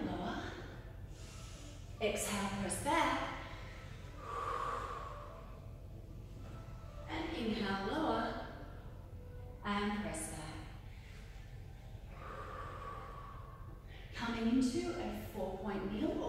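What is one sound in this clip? A woman speaks calmly, giving instructions in a room with some echo.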